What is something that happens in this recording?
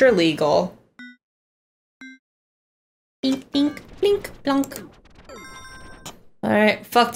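Short electronic chimes beep a few times.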